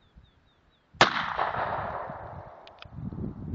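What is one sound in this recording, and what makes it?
A pistol fires a single loud shot outdoors, echoing away.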